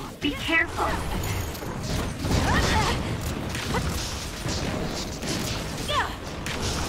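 Weapon strikes and combat effects whoosh and clash.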